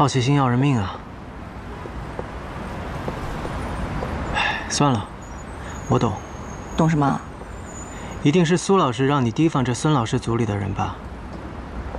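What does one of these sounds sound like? A young man speaks quietly and calmly, close by.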